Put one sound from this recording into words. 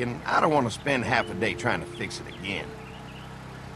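A man speaks casually, close by.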